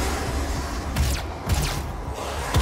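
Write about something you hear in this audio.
A gun fires loud blasts.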